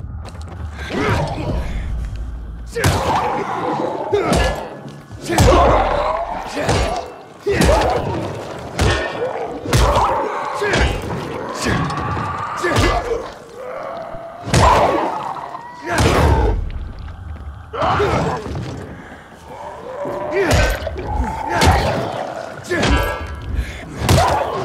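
Heavy blows strike flesh with wet thuds.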